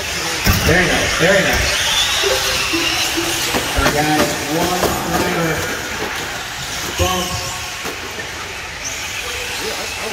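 Small electric racing cars whine as they speed around a dirt track.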